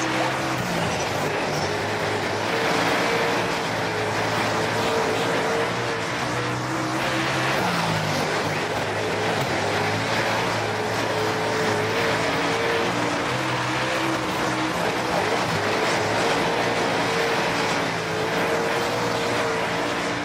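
A race car engine roars steadily, rising and falling in pitch as it speeds up and slows.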